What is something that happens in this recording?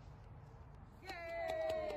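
A small crowd cheers and whoops outdoors.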